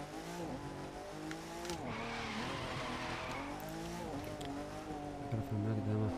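Car tyres screech on tarmac.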